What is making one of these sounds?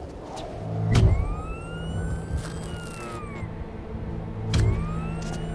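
A suction glove hums with a rising electronic whine.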